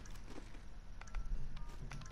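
An electronic device beeps softly.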